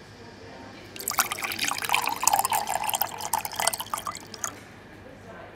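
Milk pours with a splashing gurgle into a plastic jug.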